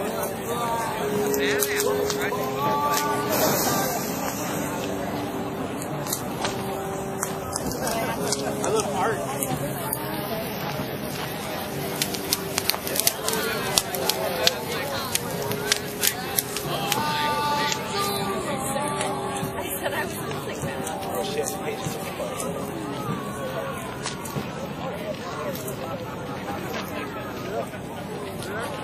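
A crowd of adults chatters and calls out outdoors.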